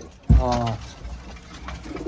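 A pigeon flaps its wings.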